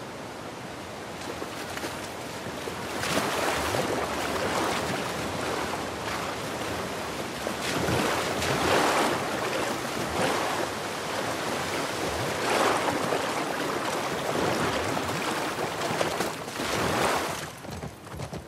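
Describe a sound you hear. A horse splashes through water.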